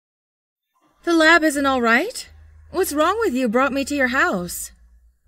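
A young woman asks questions in a startled voice.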